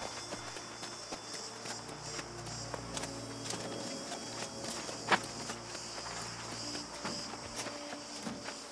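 Footsteps with a light clink of armour tread over rough ground.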